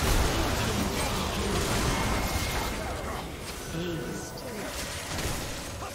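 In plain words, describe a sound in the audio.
Game combat effects clash and burst rapidly.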